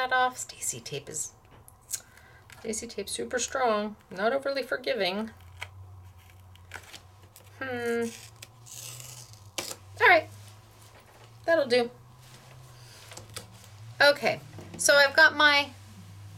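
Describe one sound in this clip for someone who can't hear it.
A card rustles softly as hands fold and press it.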